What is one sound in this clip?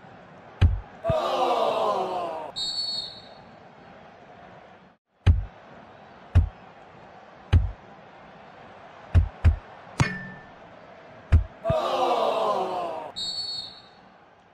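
A stadium crowd cheers loudly after a goal.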